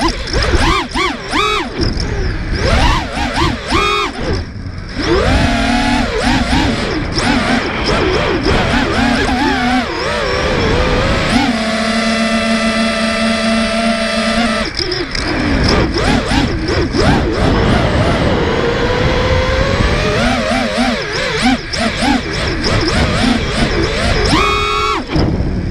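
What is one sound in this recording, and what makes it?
Small drone motors whine loudly, rising and falling in pitch as the drone swoops around.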